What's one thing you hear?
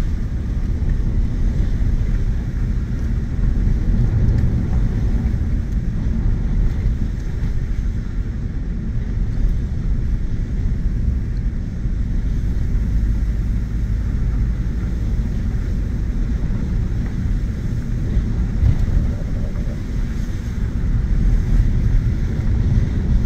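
Tyres crunch and rumble over a dirt road.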